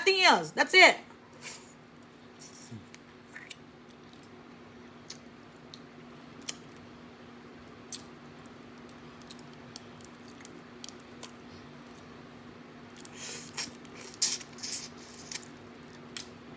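A woman chews and slurps food close to the microphone.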